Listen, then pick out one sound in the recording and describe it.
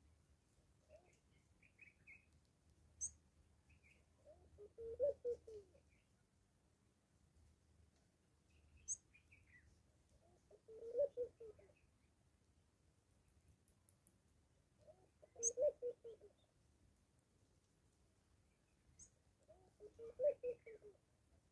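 A small bird chirps softly nearby.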